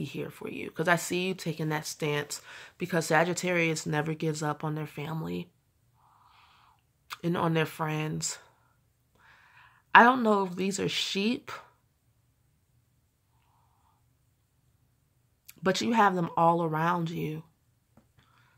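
A young woman speaks calmly and close by, in short bursts with pauses.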